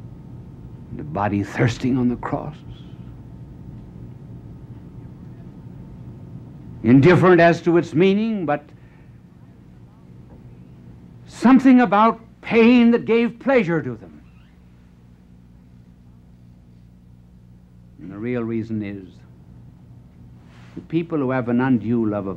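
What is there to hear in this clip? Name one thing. A middle-aged man speaks dramatically into a microphone, in short phrases with long pauses.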